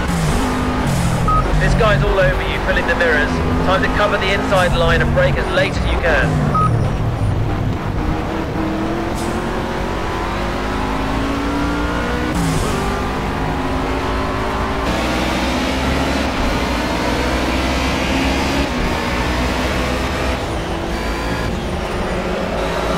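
A racing car engine roars close by, revving up and down through gear changes.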